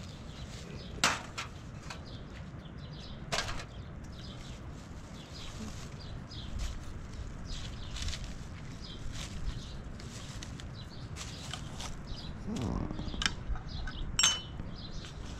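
Dishes clink and clatter close by.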